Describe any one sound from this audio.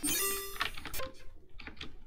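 A computer game plays a short, bright electronic jingle.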